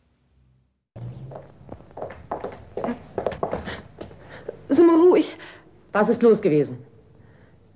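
A woman speaks sternly in a small room.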